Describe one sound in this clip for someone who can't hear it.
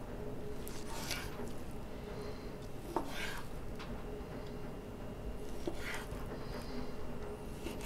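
A knife slices through meat and taps on a wooden board.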